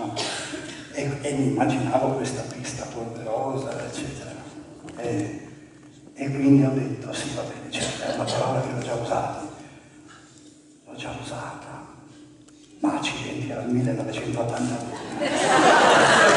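A man speaks with animation through a microphone in a hall.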